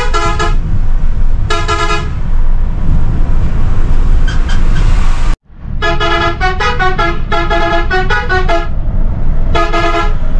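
A vehicle horn plays a tune in short bursts.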